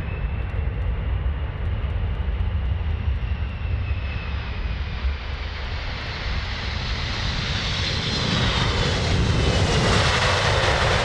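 A jet engine whines with a high, shifting pitch as the plane passes.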